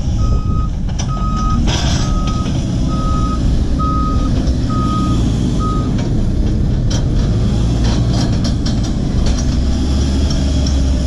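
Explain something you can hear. A backhoe's diesel engine rumbles and roars up close.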